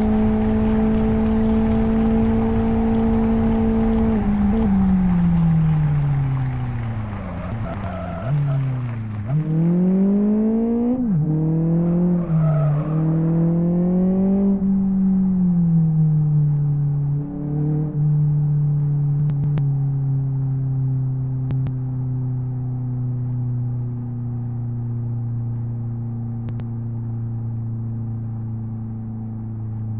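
A racing car engine drones at high revs, drops in pitch as it slows, then revs up again through the gears and settles to a steady hum.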